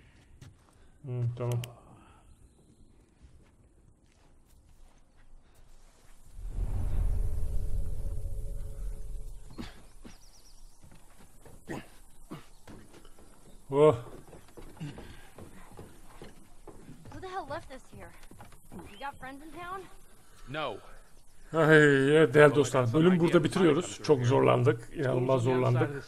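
A man talks close to a microphone with animation.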